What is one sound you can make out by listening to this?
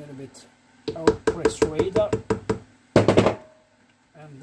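A hammer knocks on a metal casing in quick blows.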